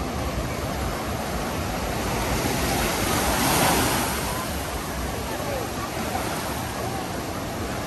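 Small waves break and wash over the shallows.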